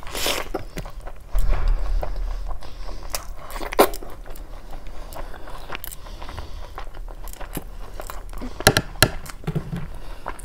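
Fingers squish and mix soft rice and gravy.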